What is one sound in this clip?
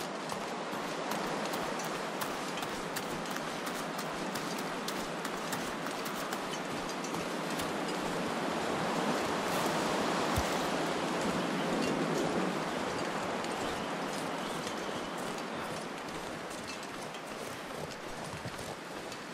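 Strong wind howls steadily, swelling and easing.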